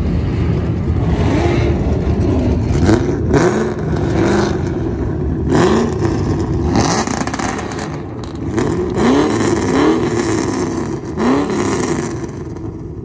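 A car engine revs loudly several times.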